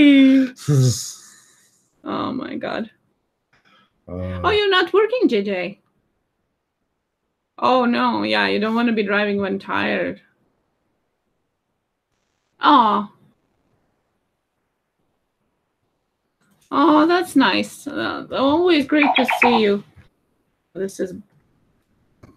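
A young woman talks calmly in bursts, heard through an online call.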